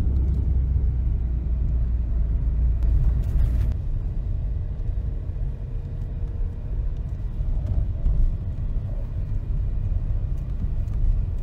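Tyres crunch and hiss over a snowy road.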